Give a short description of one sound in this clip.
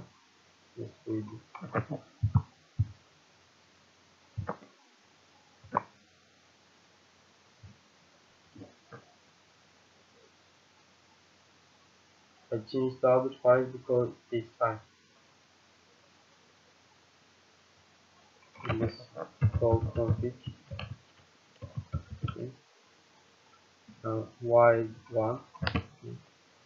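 A young man speaks calmly into a close microphone, pausing between phrases.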